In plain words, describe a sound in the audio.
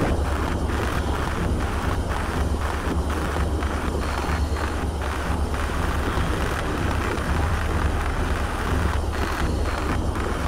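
Air bubbles gurgle and bubble underwater.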